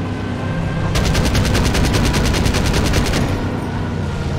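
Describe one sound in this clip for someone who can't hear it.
A machine gun fires in a rapid burst.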